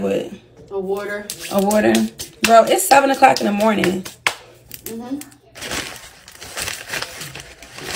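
A plastic bag rustles and crinkles.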